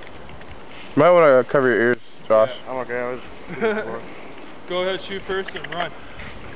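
A young man talks loudly nearby outdoors.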